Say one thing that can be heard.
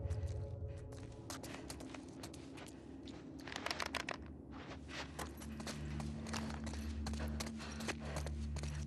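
Footsteps crunch over debris on a hard floor.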